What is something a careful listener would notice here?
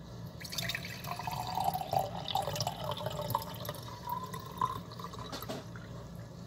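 Water fizzes and bubbles in a glass jar.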